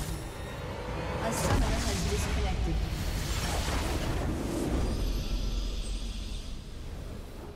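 A large crystal shatters and explodes with a deep rumbling blast.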